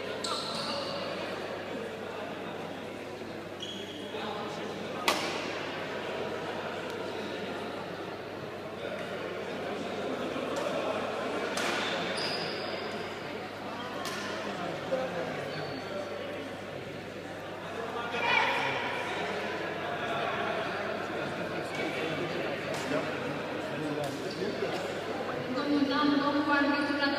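Voices chatter in a large echoing hall.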